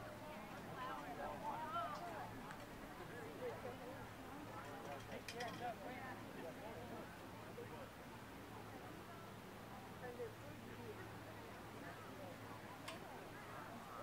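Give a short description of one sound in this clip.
A crowd of men and women chatter at a distance outdoors.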